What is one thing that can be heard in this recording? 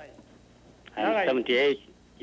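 Another man speaks through a microphone.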